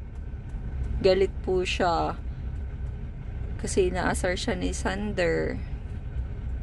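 A woman speaks playfully close by.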